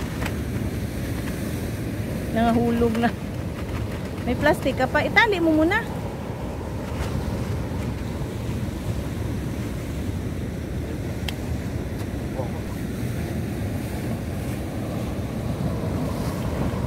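Sea waves crash and roar nearby, outdoors in wind.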